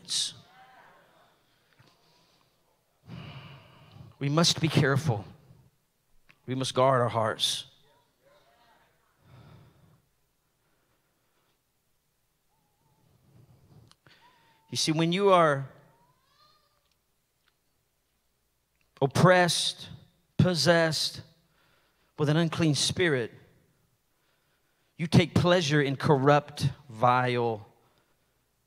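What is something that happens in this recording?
A middle-aged man speaks into a microphone in bursts with long pauses, in a large room.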